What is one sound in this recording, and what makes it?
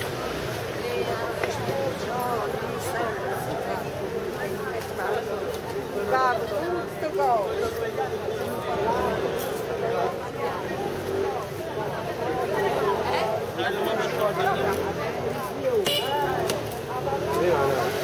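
Many men and women chatter nearby outdoors.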